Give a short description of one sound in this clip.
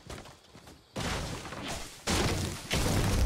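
A pickaxe chops into a tree with a woody thud.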